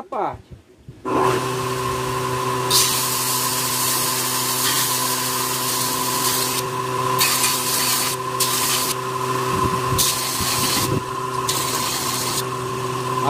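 An electric belt grinder motor hums steadily.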